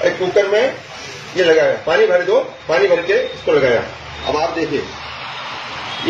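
A pressure cooker hisses steam.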